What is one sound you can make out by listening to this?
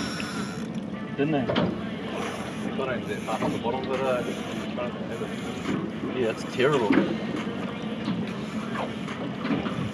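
A dolphin whistles and chirps underwater.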